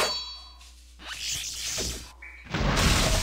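A magic spell bursts with a shimmering whoosh.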